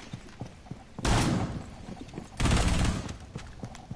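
Gunfire crackles in a short, loud burst.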